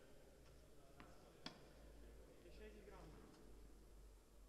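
A tennis ball is struck with sharp pops in a large echoing hall.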